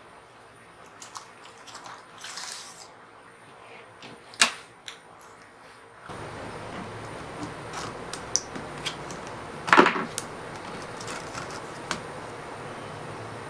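Plastic parts click and rattle as a laptop keyboard is pried loose.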